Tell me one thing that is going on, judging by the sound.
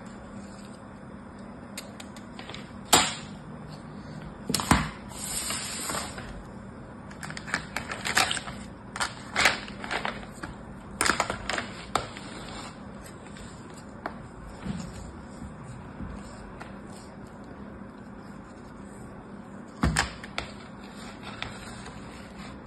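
Sand crumbles and rustles as hands press it into a plastic mould.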